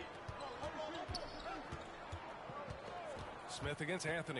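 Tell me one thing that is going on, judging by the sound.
A basketball bounces steadily on a hardwood court.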